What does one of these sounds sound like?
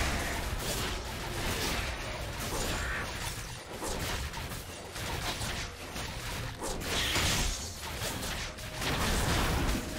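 Game combat effects crackle and clash during a fight.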